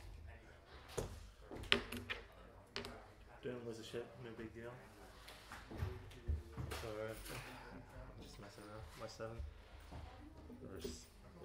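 Game pieces knock lightly on a table.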